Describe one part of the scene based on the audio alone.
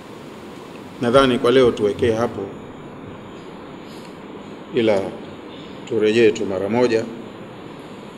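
An elderly man recites slowly in a chanting voice through a microphone, in a reverberant hall.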